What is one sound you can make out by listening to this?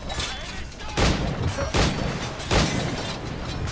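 A gunshot blasts loudly nearby.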